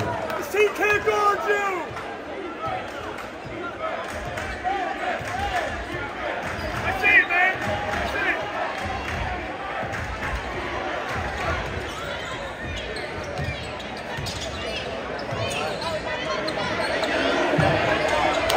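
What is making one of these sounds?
A basketball bounces on a wooden floor in steady dribbles.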